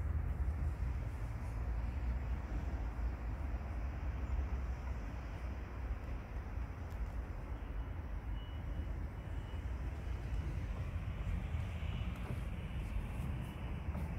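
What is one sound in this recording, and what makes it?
A car door handle clicks as it is pulled.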